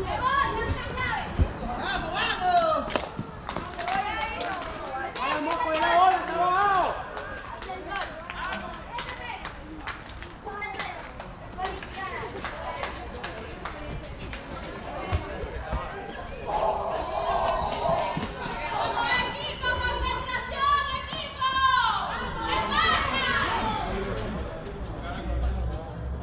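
Young men call out and chatter outdoors, some near and some farther off.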